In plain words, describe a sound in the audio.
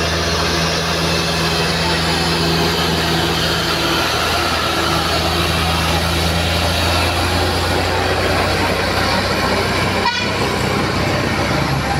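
A heavy truck's diesel engine rumbles loudly close by as it climbs past.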